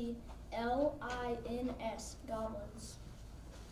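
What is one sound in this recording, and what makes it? A young boy speaks clearly into a microphone.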